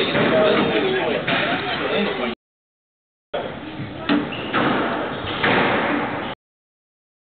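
A squash ball smacks sharply off a racket and the walls in an echoing court.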